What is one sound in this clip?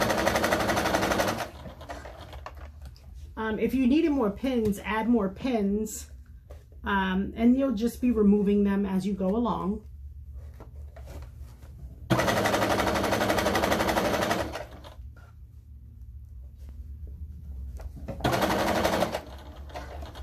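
A sewing machine whirs rapidly in short bursts.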